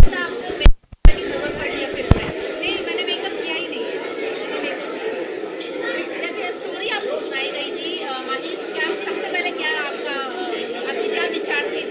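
A young woman speaks calmly into microphones, close by.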